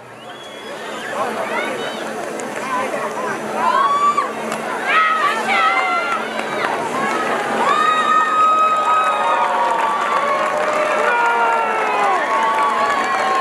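A brass band plays a lively tune outdoors.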